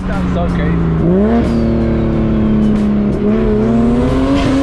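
A sports car engine revs loudly close alongside, rising in pitch.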